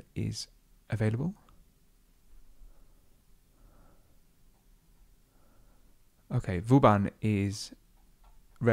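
A man speaks close to a microphone in short phrases.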